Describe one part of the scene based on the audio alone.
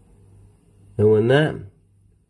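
A man's voice comes briefly through a small handheld radio's loudspeaker.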